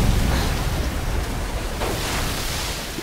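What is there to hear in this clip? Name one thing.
Fire roars loudly.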